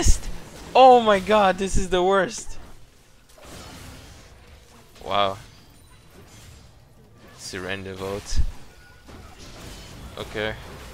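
Game spells crackle and burst in a fight.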